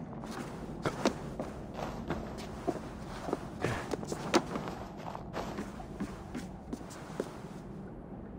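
Footsteps thud and scrape on wooden planks and stone.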